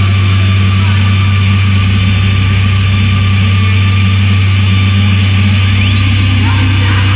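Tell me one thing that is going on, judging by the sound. A band plays loud live music through speakers.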